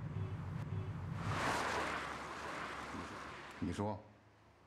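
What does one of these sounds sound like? A car drives off down a road.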